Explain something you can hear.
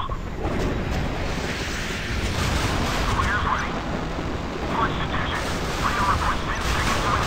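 A helicopter's cannon fires in bursts.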